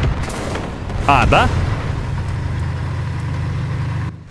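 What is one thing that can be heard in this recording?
A tank explodes with a loud blast.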